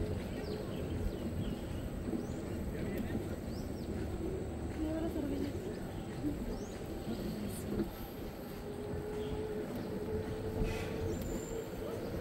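Wheels roll steadily along a paved path outdoors.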